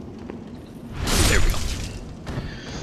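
A sword swings and strikes with a loud clash.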